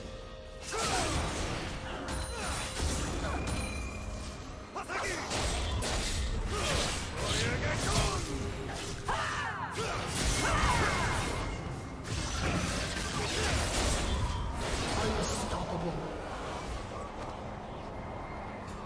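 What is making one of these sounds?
Game spells whoosh and blast during a fight.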